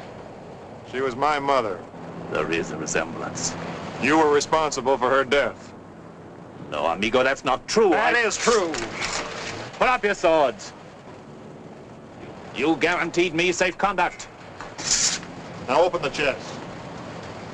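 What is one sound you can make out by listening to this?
Men speak in turn, in raised, tense voices, close by.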